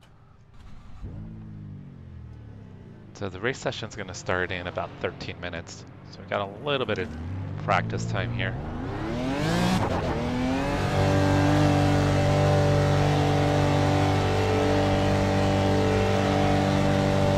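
A racing car engine revs up, rising in pitch as it accelerates, then roars steadily at high speed.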